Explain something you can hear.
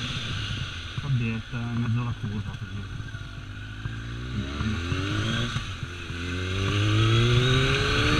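A motorcycle engine hums close by, revving up and down as it climbs.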